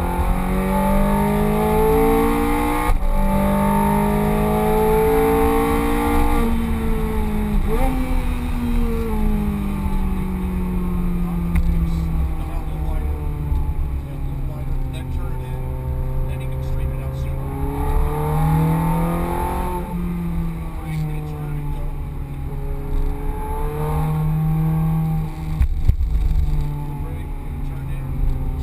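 A sports car engine roars loudly, revving up and down as gears shift.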